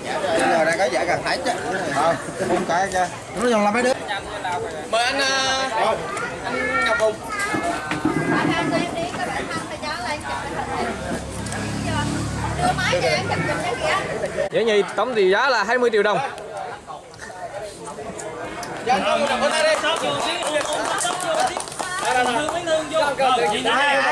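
Several adult men talk loudly over one another nearby.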